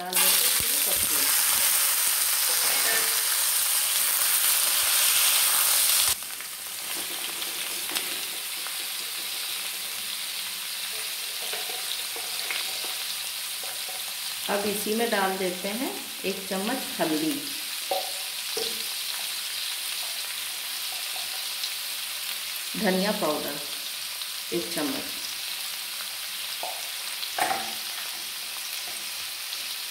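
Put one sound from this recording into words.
Food sizzles in a hot pan, loudly at first and then more softly.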